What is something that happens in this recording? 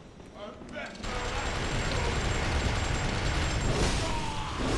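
A gunshot blasts out during a fight.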